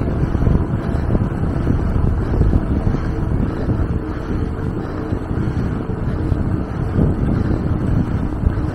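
Tyres roll steadily over pavement.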